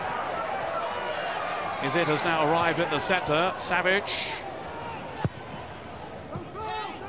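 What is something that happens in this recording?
A large stadium crowd murmurs and roars.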